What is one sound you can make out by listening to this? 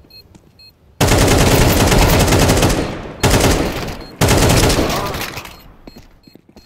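A rifle fires loud rapid bursts.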